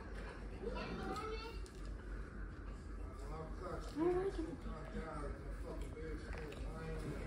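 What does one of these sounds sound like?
A girl talks excitedly nearby.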